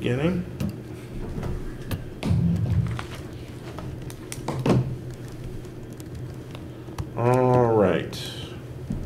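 A man speaks briefly in a large room.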